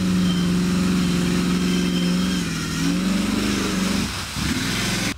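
A truck engine roars and revs loudly through deep mud.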